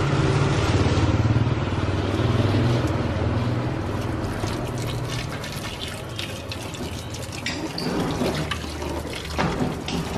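Water pours from a hose into a plastic tub.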